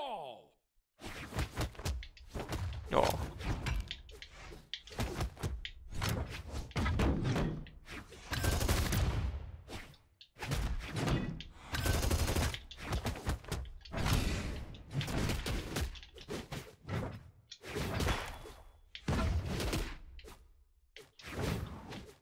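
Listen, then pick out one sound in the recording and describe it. Video game fighters trade punches and blasts with rapid thuds, whooshes and cracks.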